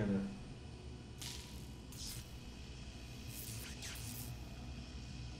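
Electric sparks crackle and snap.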